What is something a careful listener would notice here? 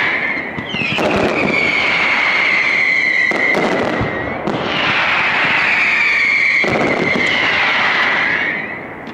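Fireworks bang and crackle in the sky.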